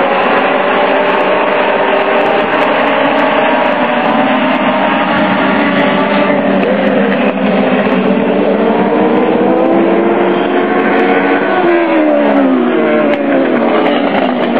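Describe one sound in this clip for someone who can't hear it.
Racing car engines roar loudly around a track, their pitch rising and falling as they pass.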